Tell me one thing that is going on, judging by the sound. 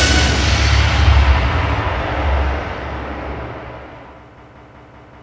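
A deep electronic game explosion rumbles loudly and slowly fades away.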